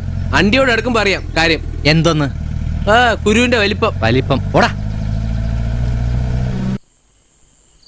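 A jeep engine rumbles steadily.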